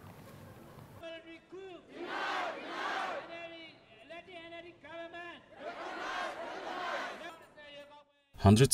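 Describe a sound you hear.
A large crowd chants in unison outdoors.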